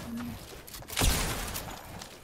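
A video game rifle fires.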